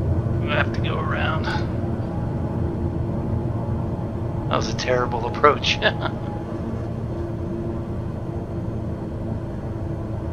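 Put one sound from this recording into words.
An aircraft engine hums steadily.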